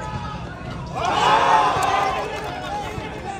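A crowd of spectators cheers loudly.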